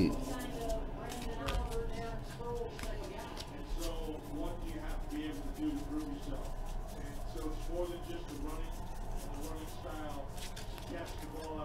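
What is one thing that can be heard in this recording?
Trading cards riffle and flick against each other in hands.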